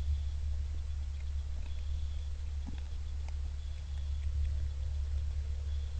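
A deer crunches corn on the ground.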